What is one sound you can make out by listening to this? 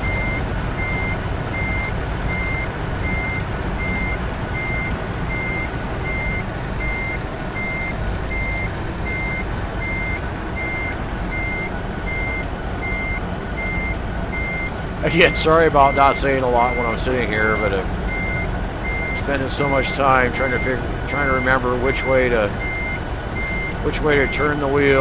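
A truck's reversing alarm beeps at an even pace.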